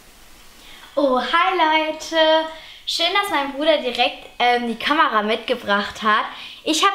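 A young girl talks cheerfully and with animation, close by.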